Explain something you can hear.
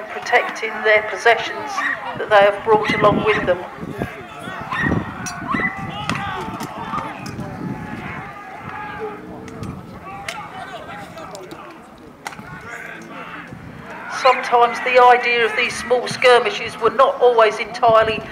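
Wooden poles and weapons clack and clash.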